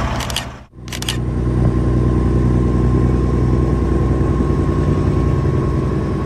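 A vehicle drives along a road with a steady engine hum and road noise.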